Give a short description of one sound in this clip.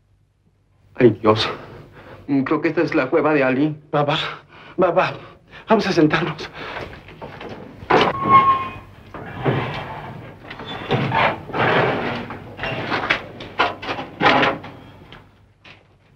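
A man speaks with animation in a lively voice.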